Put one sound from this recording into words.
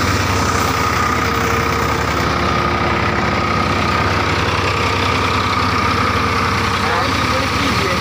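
A threshing machine whirs and rattles loudly.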